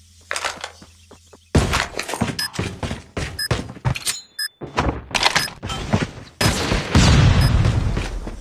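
Footsteps thud quickly.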